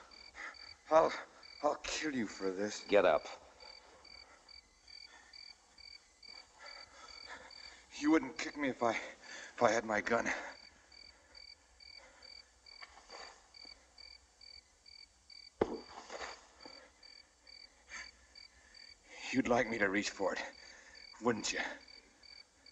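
A man speaks in a low, tense voice, in short bursts with pauses.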